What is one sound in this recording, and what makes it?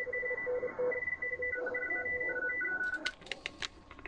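A radio receiver sends out short, steady beeping tones.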